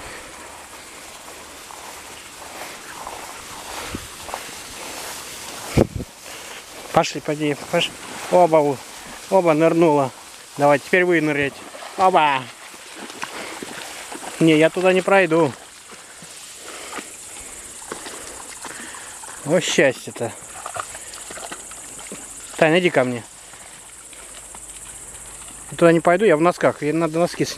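Tall grass rustles as dogs run through it.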